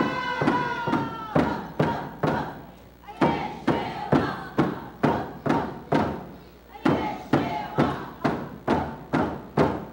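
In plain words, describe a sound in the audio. Elderly women sing together in a steady chant.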